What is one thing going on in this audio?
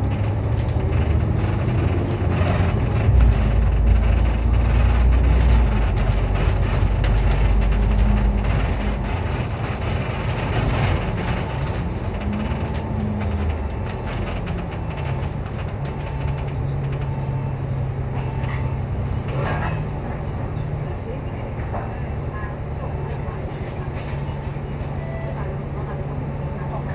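A vehicle engine rumbles low and steady, heard from on board.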